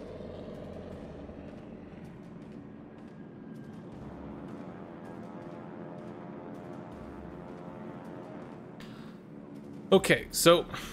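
Aircraft engines drone steadily.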